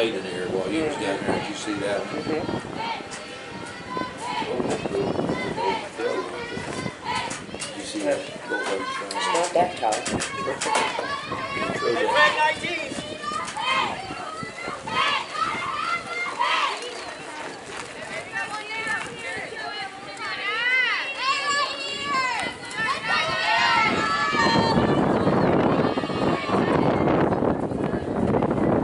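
Young women call out and cheer from across an open field.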